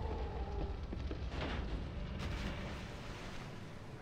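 Water splashes heavily.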